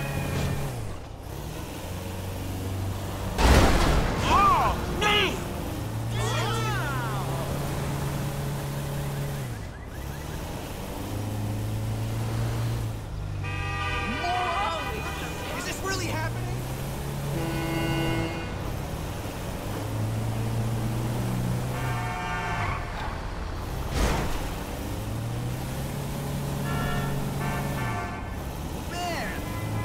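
A truck engine hums and revs up and down.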